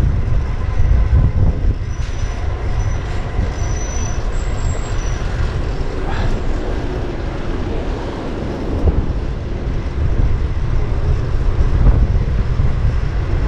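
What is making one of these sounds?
Wind rumbles loudly past the microphone.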